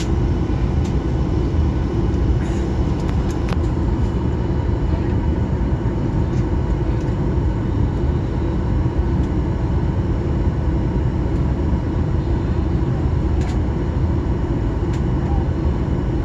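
Jet engines hum and roar steadily as a plane taxis.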